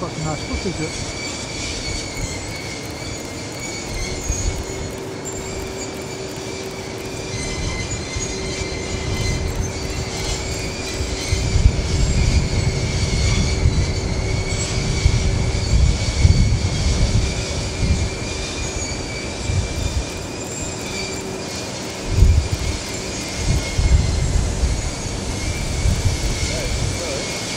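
Rooftop ventilation fans hum steadily outdoors.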